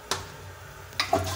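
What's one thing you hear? Water starts to rush as a toilet flushes.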